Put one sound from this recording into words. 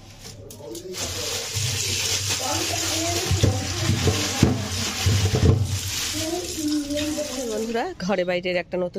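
Water runs from a tap into a metal sink.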